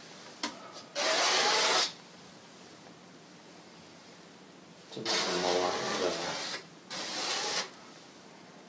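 Chalk scrapes across a board in bursts.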